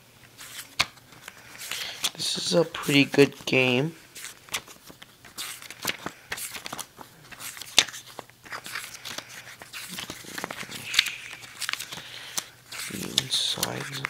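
Paper pages rustle and flip as a booklet is leafed through.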